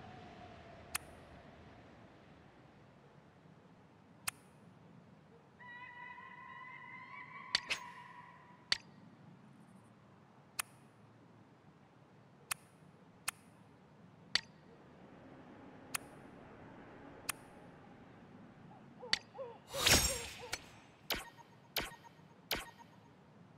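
Short, sharp menu clicks tick now and then.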